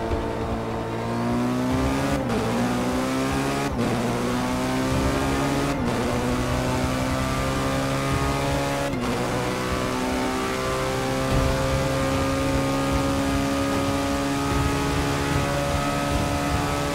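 A racing car engine roars at high speed, its pitch climbing and dropping sharply with each gear change.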